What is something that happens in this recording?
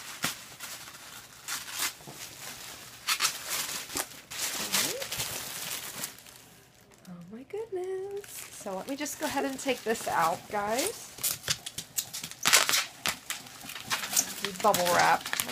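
Cardboard and paper rustle and crinkle as a box is handled.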